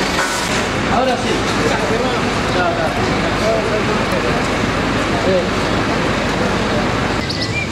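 A car drives slowly past on a street.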